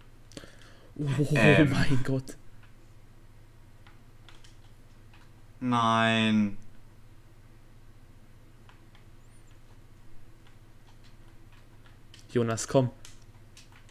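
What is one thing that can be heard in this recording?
A young man talks through a headset microphone in short bursts.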